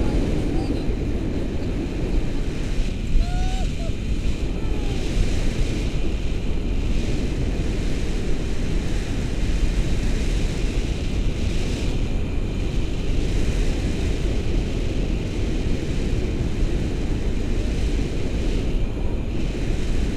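Strong wind rushes and buffets steadily outdoors.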